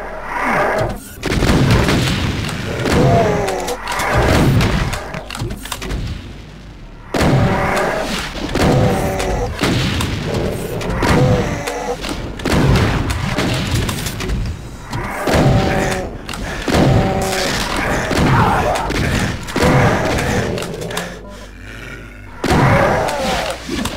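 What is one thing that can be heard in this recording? A shotgun fires loud booming blasts again and again.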